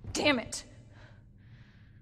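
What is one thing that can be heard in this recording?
A young woman speaks briefly with frustration.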